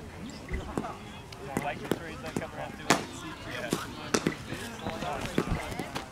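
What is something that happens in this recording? A bowler's footsteps thud on turf as he runs in.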